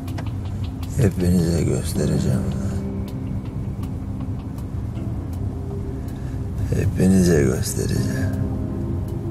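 A man speaks in a low voice close by.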